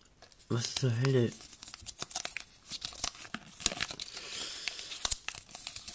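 Paper crinkles and rustles as it is unfolded.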